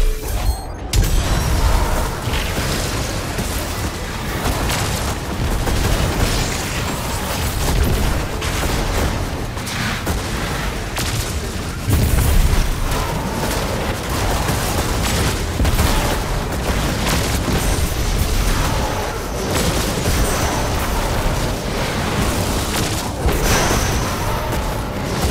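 Rapid gunfire rattles without pause.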